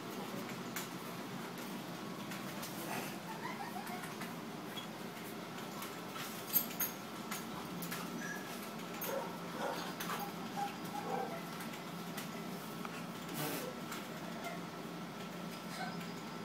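Dog paws scrabble and click on a hard floor.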